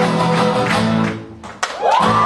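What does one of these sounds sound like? An acoustic guitar strums through loudspeakers.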